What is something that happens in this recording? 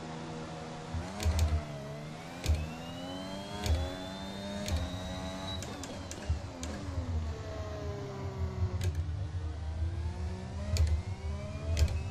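A racing car engine revs up, rising in pitch and dropping with each gear change.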